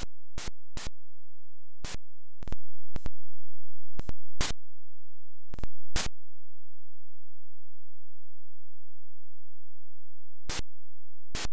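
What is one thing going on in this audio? Short, sharp electronic noise bursts sound as game fighters trade blows.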